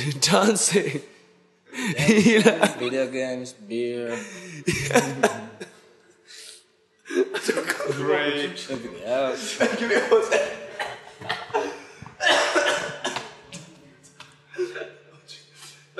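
Young men laugh loudly together.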